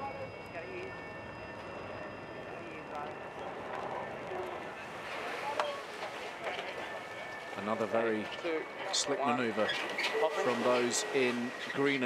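A sailing boat skims fast across the water with a hissing rush of spray.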